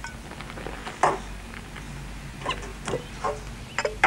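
A glass bottle clinks down on a counter.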